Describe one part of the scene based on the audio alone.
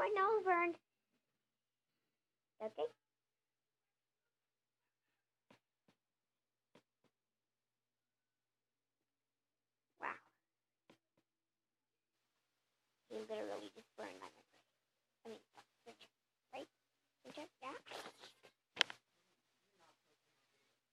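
A young child speaks in short, high bursts close by.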